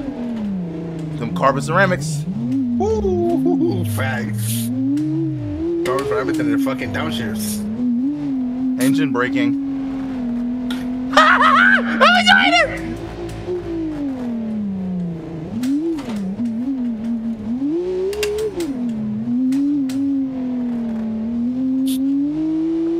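A car engine revs and whines, rising and falling with speed.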